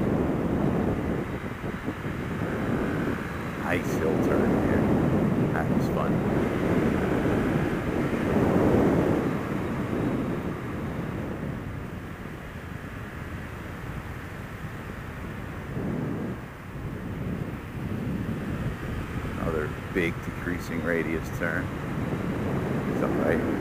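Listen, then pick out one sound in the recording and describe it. Wind rumbles and buffets loudly against a moving rider.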